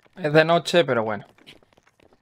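A young man speaks briefly into a microphone with animation, close up.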